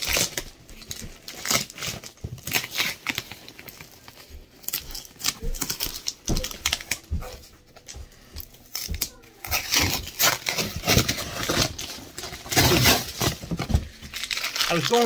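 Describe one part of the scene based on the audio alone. A man peels tape off a cardboard box with a rasping tear.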